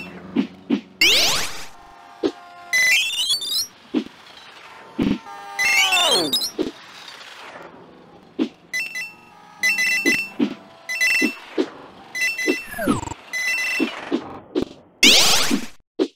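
Electronic game sound effects whoosh and swoop up and down.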